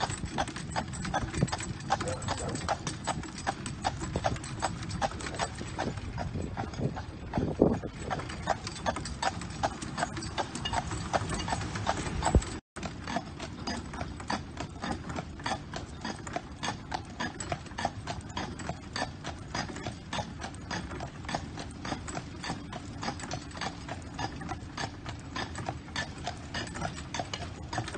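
A horse's hooves clop steadily on pavement.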